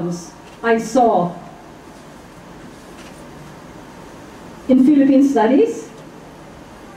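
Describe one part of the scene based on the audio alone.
A middle-aged woman speaks with animation into a microphone, in short bursts with pauses.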